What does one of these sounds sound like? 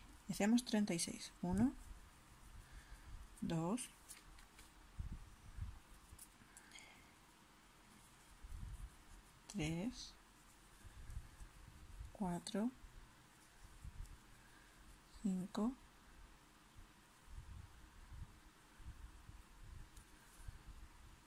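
A crochet hook rubs softly through yarn.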